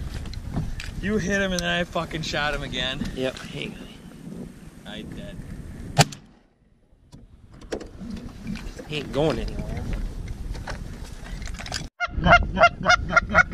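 Ducks on the water quack and call.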